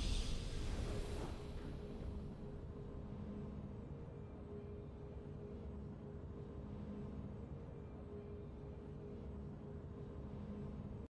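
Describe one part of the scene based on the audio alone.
A triumphant game fanfare swells and then settles into a soft, steady drone.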